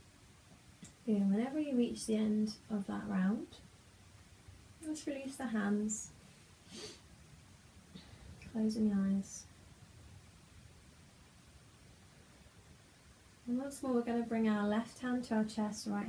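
A young woman speaks calmly and softly nearby, in pauses.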